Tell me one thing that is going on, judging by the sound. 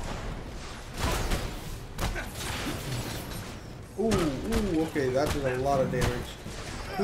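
Energy blasts fire and crash with sharp bangs.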